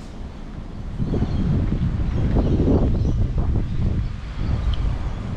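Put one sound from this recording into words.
A car drives along a nearby street.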